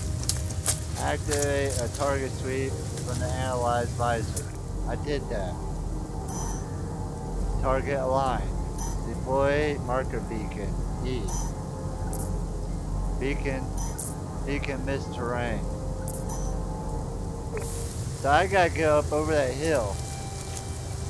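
A young man talks casually through a microphone.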